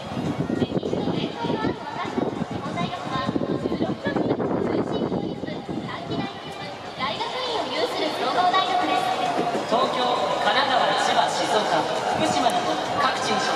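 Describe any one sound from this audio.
A large crowd murmurs and chatters in an open stadium.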